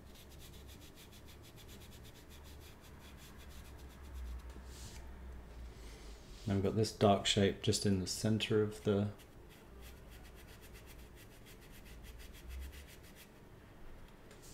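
A brush strokes ink across paper.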